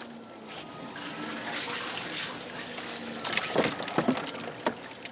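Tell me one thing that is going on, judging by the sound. Fish splash and flop in a tub of water.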